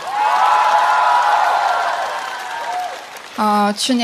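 An audience laughs and cheers loudly.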